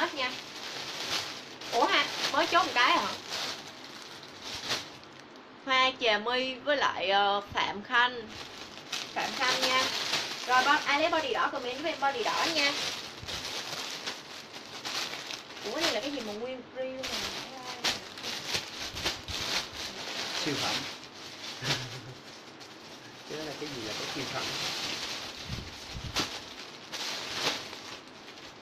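Plastic wrapping crinkles and rustles.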